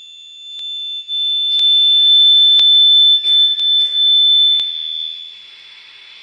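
A microphone squeals with loud, steady, high-pitched feedback that then fades.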